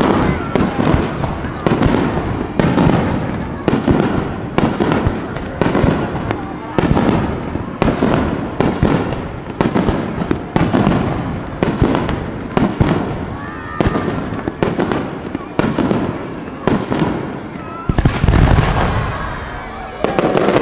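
Fireworks crackle and fizzle after the bursts.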